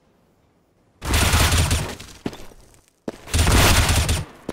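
Rifle shots fire in quick, loud bursts.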